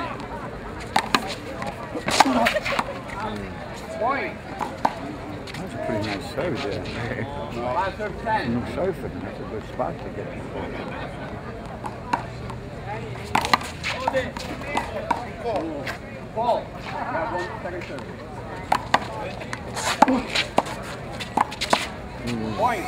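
A rubber ball smacks sharply against a concrete wall.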